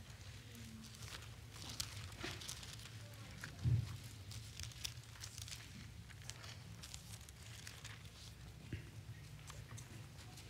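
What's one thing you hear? Paper pages rustle softly as they are turned.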